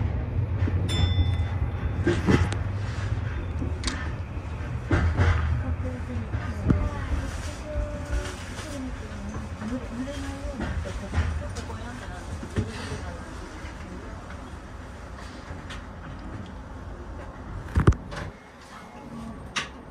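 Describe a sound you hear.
A train rumbles along the tracks, its wheels clacking over rail joints.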